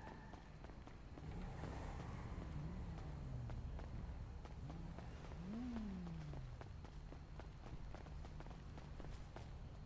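Footsteps patter quickly on paving.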